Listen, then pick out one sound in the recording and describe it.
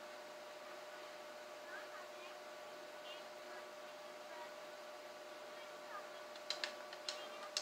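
A cartoon soundtrack plays quietly through a television speaker.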